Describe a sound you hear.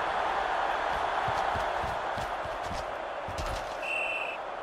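Players collide with heavy thuds.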